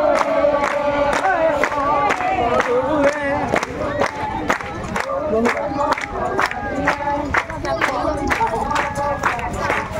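A crowd of men and women sings together.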